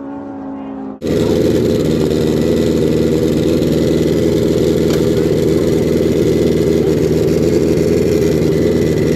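A drag racing motorcycle idles at the start line.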